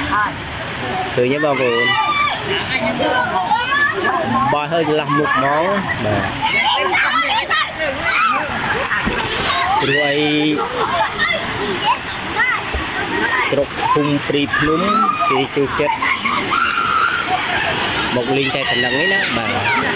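Children splash in the water.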